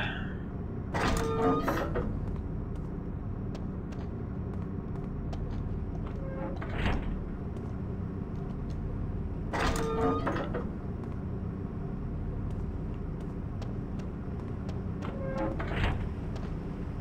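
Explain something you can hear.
A heavy metal door slides open with a mechanical whoosh.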